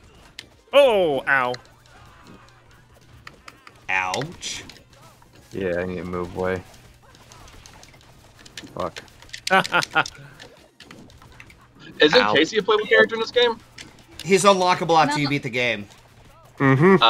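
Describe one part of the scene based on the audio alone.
Cartoon punches and kicks smack and crash in quick bursts.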